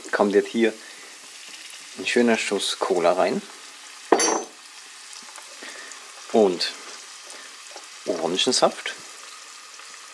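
Liquid pours into a hot pan and hisses.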